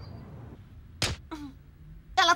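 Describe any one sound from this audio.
A fist thumps against a framed poster on a wall.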